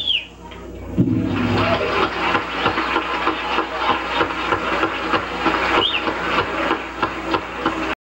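Drums beat a steady rhythm.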